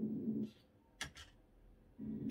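A computer mouse clicks a few times close by.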